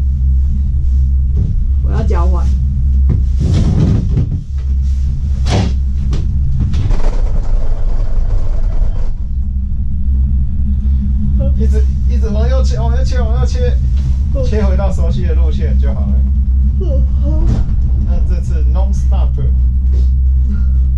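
A gondola cabin hums and rumbles steadily as it rides along a cable.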